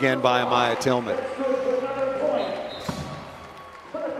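A crowd cheers and claps in a large echoing hall.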